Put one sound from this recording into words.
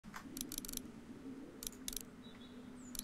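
Soft menu clicks tick a few times.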